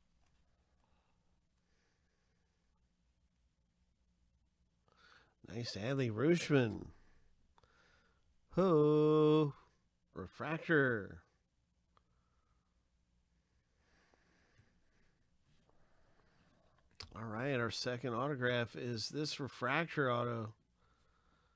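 Trading cards slide and rustle against each other.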